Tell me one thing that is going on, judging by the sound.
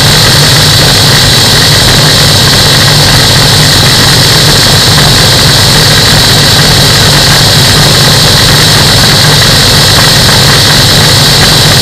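Wind roars loudly past the microphone.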